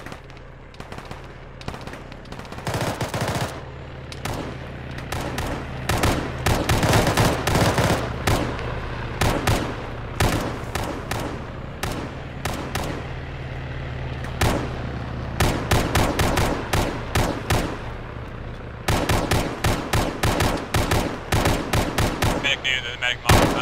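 Rifles fire in rapid bursts, with sharp cracks echoing outdoors.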